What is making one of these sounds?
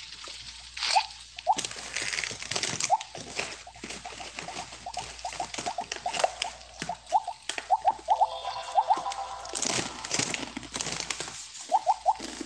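Short bright electronic chirps ring out again and again.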